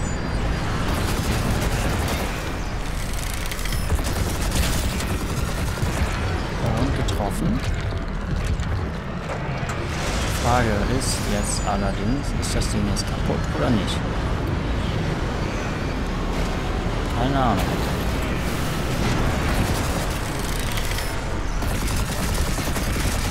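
Gunfire and explosions crackle and rumble.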